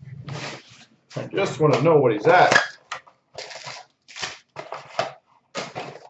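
A cardboard box is torn open.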